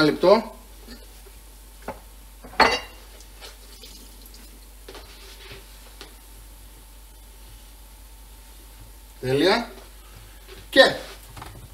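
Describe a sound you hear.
Oil sizzles in a frying pan.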